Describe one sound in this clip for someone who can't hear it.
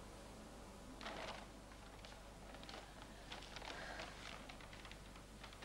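Stiff paper rustles as it is unrolled.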